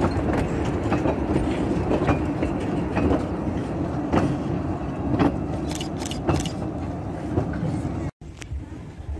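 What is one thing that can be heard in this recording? Train carriages roll past close by, wheels clacking over rail joints.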